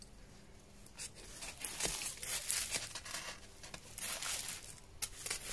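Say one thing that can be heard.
A knife scrapes and shaves wood close by.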